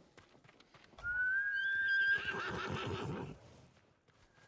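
A horse neighs loudly.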